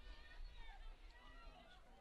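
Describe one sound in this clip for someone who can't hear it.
A field hockey stick strikes a ball outdoors.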